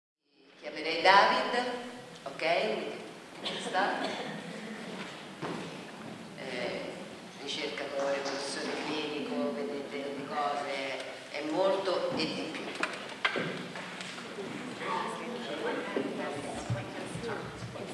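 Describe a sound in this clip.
A woman speaks with animation into a microphone in a hall.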